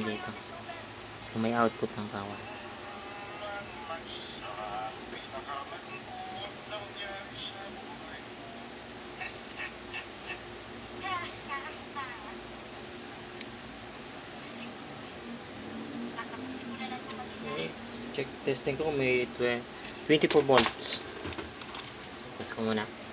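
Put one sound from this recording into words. A plastic printer casing clicks and rattles as hands handle it.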